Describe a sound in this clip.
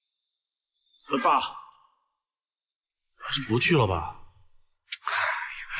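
A middle-aged man speaks in a low, hesitant voice.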